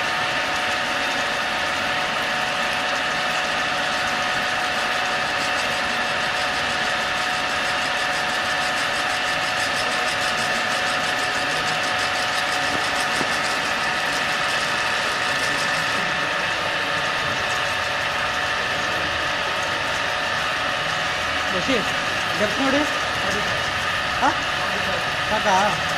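A drilling machine hums and whines steadily as it bores into metal.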